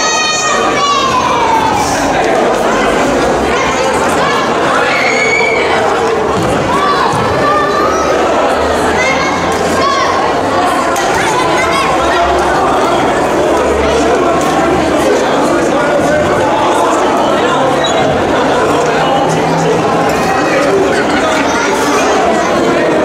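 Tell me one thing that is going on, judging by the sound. A crowd of children and adults chatters and shouts loudly in a large echoing hall.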